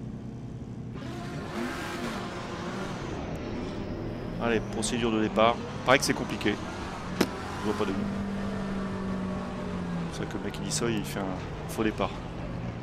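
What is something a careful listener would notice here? A racing car engine roars and revs as it speeds up.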